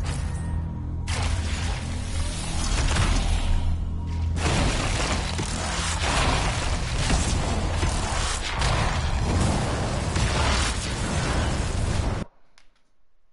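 Loud energy blasts and explosions roar in quick succession.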